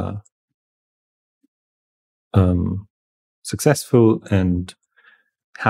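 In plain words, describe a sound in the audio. A young man talks calmly and close into a microphone, in short bursts.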